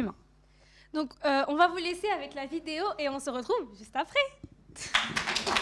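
A second young woman answers through a microphone.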